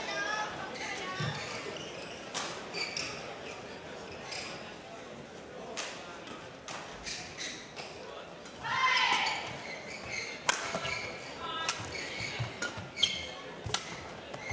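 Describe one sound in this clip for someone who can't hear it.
A shuttlecock cracks sharply off rackets.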